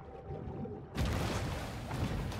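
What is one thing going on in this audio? Water splashes and churns as a large fish breaks the surface.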